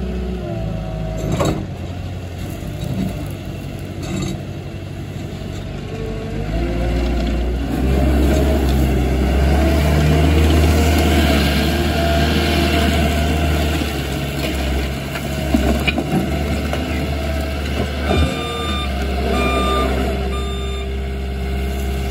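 A diesel engine rumbles steadily and revs up as a loader drives off.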